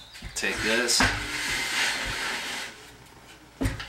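A metal sheet scrapes across a table.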